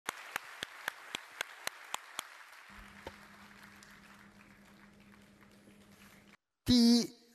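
An audience applauds in a large hall, and the applause fades away.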